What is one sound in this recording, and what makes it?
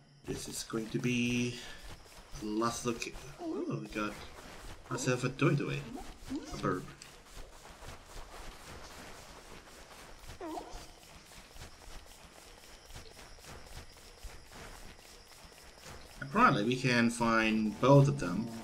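Quick light footsteps patter steadily.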